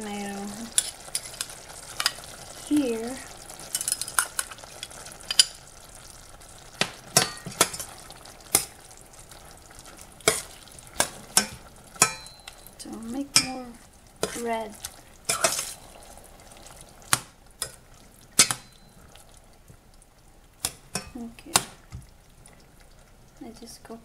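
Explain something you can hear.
Food simmers and bubbles in a pot.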